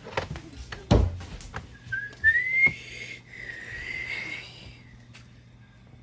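A couch bumps and knocks as it is pushed and shifted.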